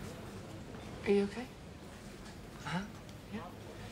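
A young woman speaks quietly up close.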